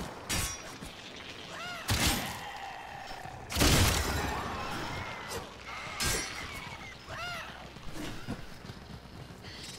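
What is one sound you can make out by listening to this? A heavy blade slashes and strikes with sharp hits.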